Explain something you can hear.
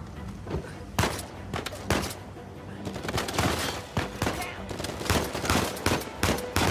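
Pistol shots crack in quick succession.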